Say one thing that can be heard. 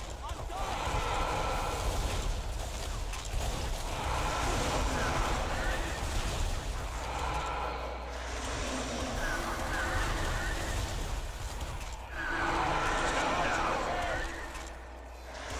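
A heavy gun fires in a rapid, continuous rattle.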